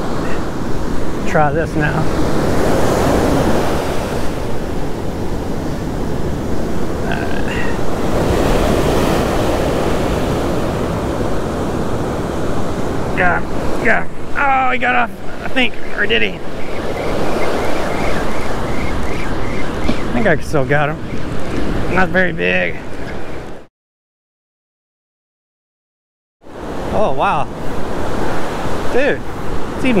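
Waves break and wash up on a shore.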